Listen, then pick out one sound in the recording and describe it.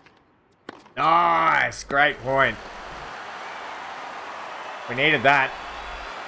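A crowd cheers and applauds.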